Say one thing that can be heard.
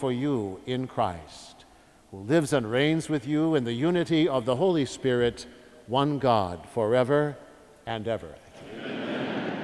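An elderly man chants in a sung voice through a microphone, echoing in a large hall.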